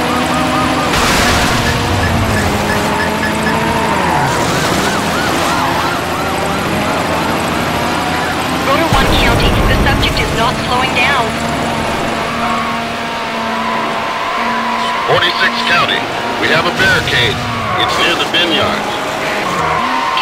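Tyres screech on tarmac through corners.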